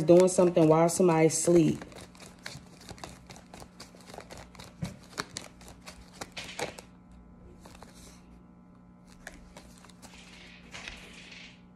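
Paper banknotes flick and rustle as they are counted.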